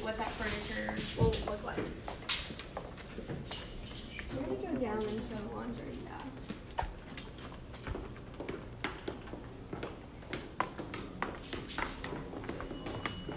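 Footsteps tap on a hard floor and stairs.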